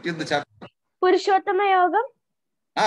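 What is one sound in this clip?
A young girl answers in a high voice over an online call.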